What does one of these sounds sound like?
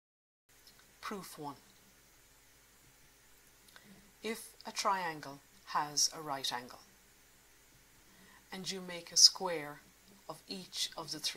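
A middle-aged woman speaks calmly and clearly into a microphone.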